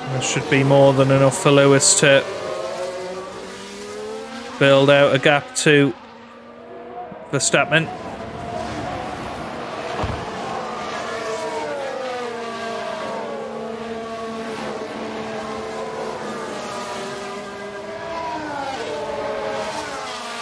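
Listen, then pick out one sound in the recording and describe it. Racing car engines whine at high pitch, rising and falling as cars speed past.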